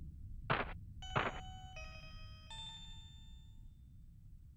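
Soft electronic tones chime in a short rising run.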